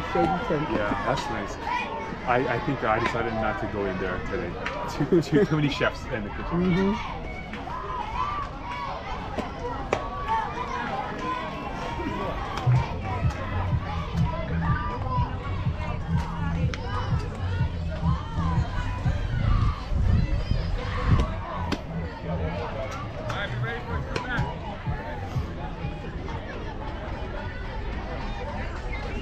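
Young players and spectators call out and chatter outdoors.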